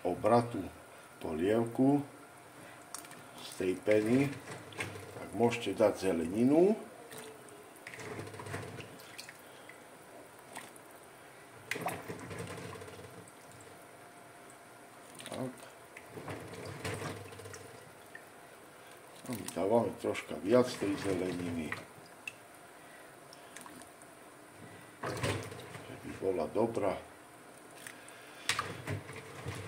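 Water bubbles in a boiling pot.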